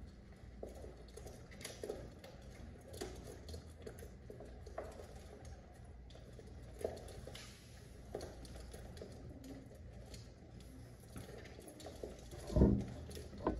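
Pigeon wings flap and rustle.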